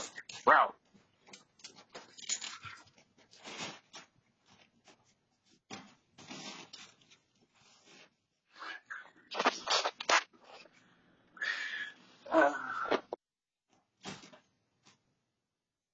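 A dog barks outdoors in short bursts.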